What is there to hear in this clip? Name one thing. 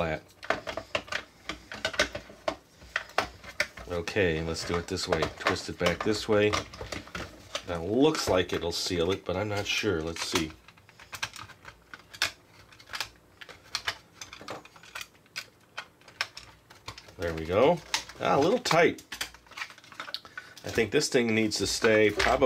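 Plastic parts of a toy click and clatter as they are handled.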